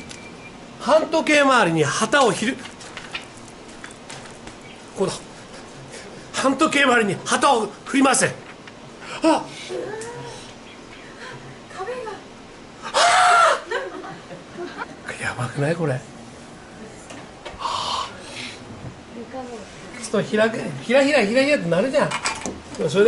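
A middle-aged man talks animatedly close by, in short bursts.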